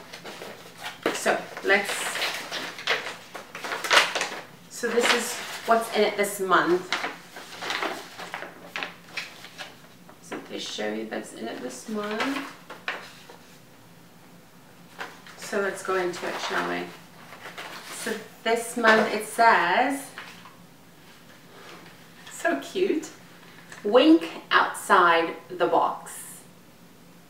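A woman talks calmly and close up.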